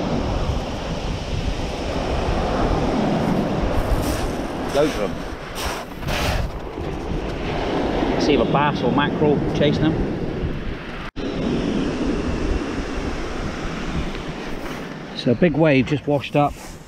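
Waves break and wash over a shingle beach.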